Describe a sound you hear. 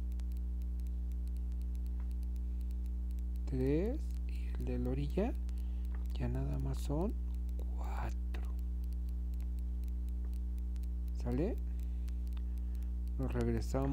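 A crochet hook softly rubs and clicks against yarn.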